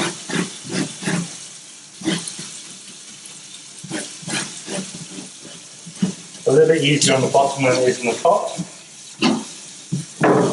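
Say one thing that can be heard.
A knife scrapes scales off a fish in quick strokes.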